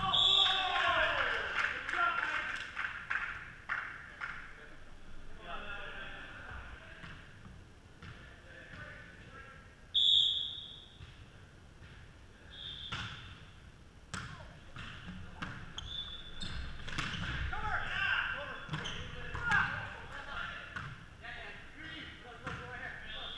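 A volleyball is struck with sharp slaps in a large echoing gym.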